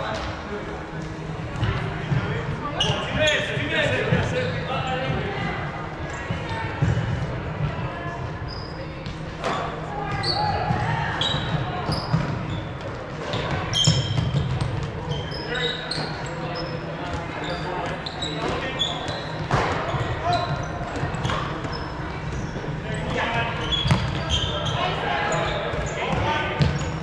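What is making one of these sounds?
Players call out and chatter, echoing in a large hall.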